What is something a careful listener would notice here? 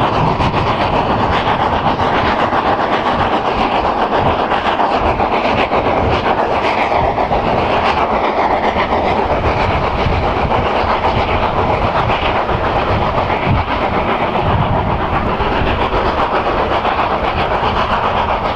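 A steam locomotive chuffs rapidly as it hauls a train past.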